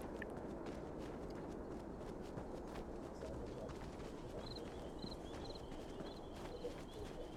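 Footsteps tread steadily along a grassy dirt path.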